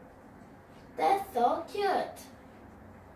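A young girl speaks up clearly.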